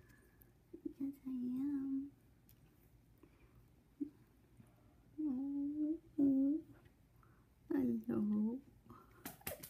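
A small puppy whines in short, high bursts.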